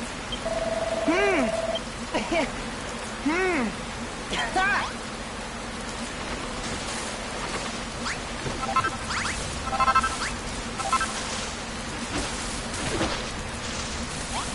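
Short bright game chimes play in quick bursts.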